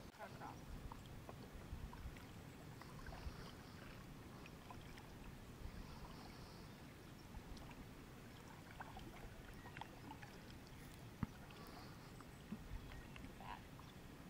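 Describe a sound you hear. A paddle dips and splashes softly in water.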